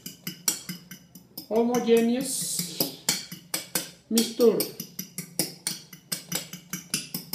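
A fork beats eggs against a bowl in quick, rhythmic clicks.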